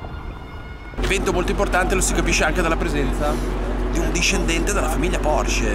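A man talks with animation close to the microphone.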